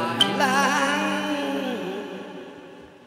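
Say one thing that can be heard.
A middle-aged man sings through a microphone, holding a long wavering final note that fades away.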